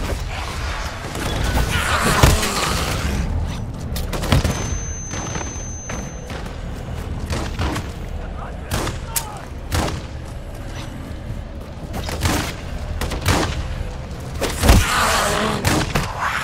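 Zombies growl and shriek close by.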